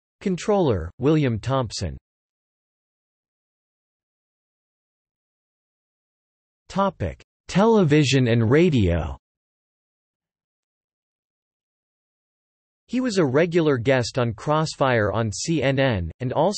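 An older man speaks with animation close by, in bursts with long pauses.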